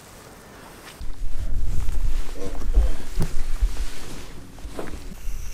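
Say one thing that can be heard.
Clothing rustles and rubs close by.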